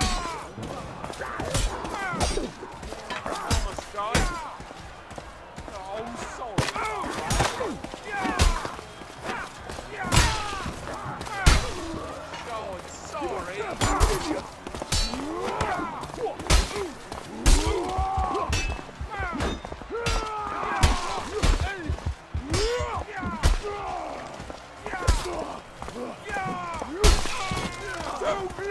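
Steel blades clash and strike in sharp, repeated hits.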